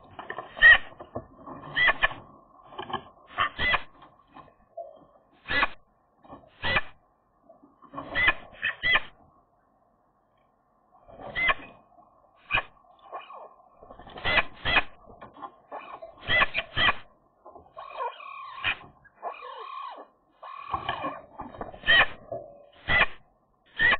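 A magpie calls close by in short, harsh bursts.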